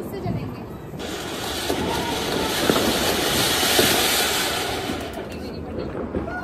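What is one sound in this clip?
A fountain firework sprays and hisses loudly.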